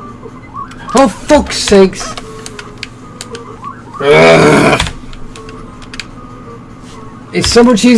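Retro video game sound effects beep and blip.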